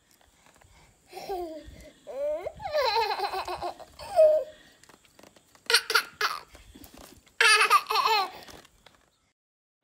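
A baby squeals and laughs.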